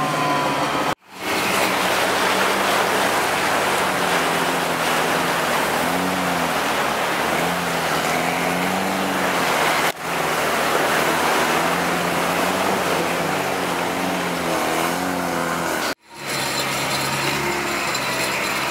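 Water splashes under tyres.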